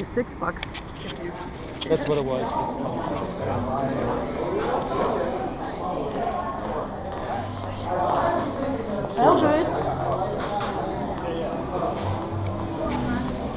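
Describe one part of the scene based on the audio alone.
Voices of a crowd murmur and chatter in a large echoing hall, growing closer.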